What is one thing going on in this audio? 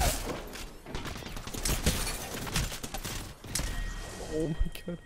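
Rapid gunfire crackles and bangs.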